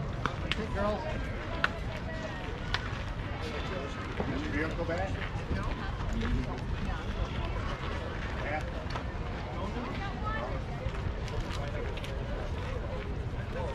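Young girls talk and call out nearby outdoors.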